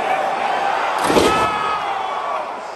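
A body crashes heavily onto a table.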